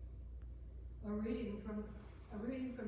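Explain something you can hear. An elderly woman speaks calmly through a microphone.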